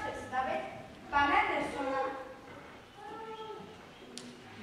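A child speaks loudly in a large echoing hall.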